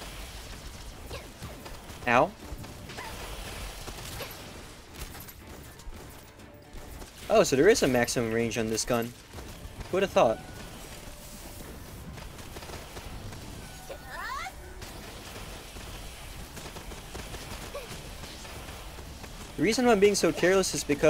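Game sound effects of magic blasts and clashes play.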